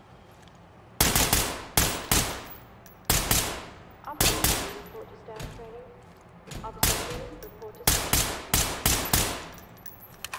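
A rifle fires loud single shots that echo briefly.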